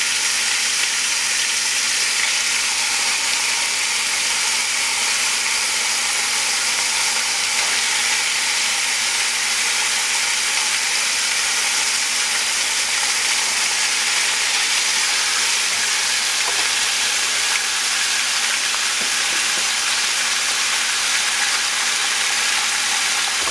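Chicken sizzles steadily in a hot pan.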